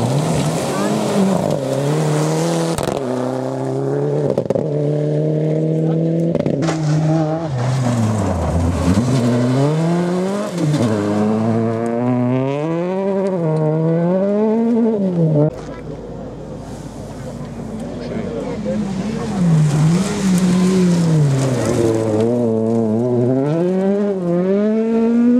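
Gravel sprays and rattles under spinning tyres.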